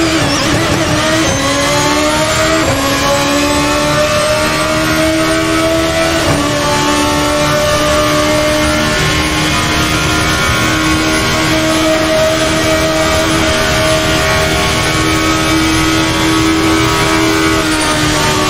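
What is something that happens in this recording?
A racing car engine screams at high revs, rising in pitch and dropping briefly with each gear change.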